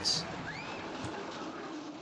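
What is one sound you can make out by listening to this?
A roller coaster rumbles along its track.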